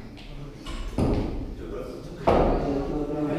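A kettlebell thuds onto a floor.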